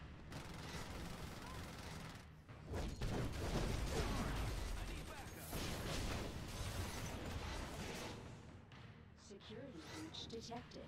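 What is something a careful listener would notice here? Energy blasts crackle and explode in a game battle.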